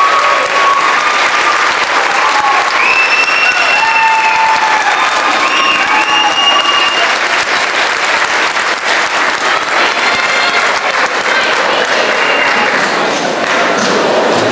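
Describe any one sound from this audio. A choir of young women and men sings together on stage, heard from the audience in a large hall.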